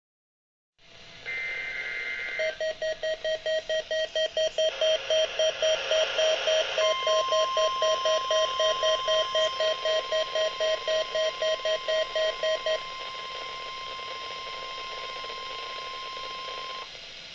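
A radio hisses with static.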